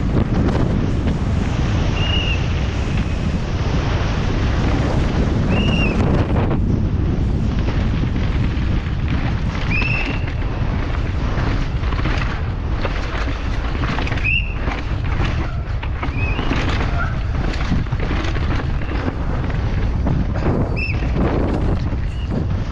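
A bike's chain and frame rattle over bumps.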